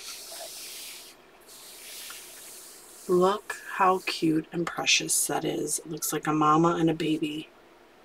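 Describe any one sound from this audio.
A hand rubs and smooths across paper.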